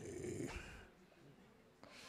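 A man laughs.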